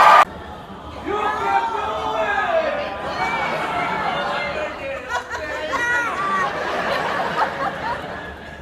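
A man talks to an audience from a stage through a microphone.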